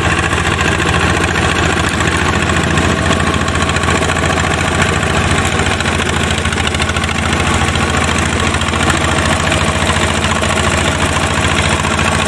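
A small diesel engine chugs steadily close by.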